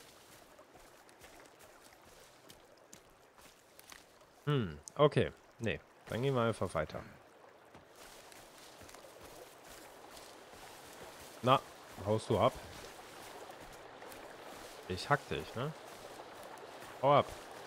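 Footsteps rustle through thick undergrowth.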